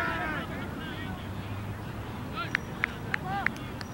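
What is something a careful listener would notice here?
A bat strikes a cricket ball with a sharp crack.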